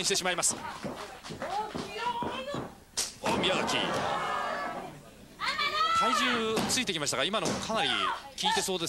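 Young women shout and scream with strain, close by.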